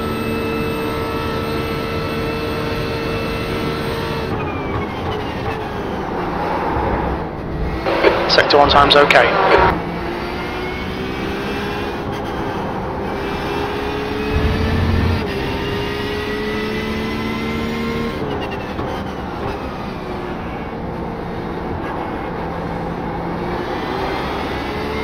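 A race car engine roars at high speed, dropping in pitch as gears shift down and rising again as it speeds up.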